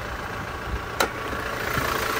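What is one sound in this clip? A car bonnet latch clicks open.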